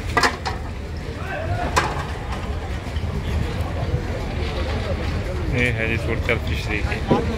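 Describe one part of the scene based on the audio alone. Water laps against wooden boats.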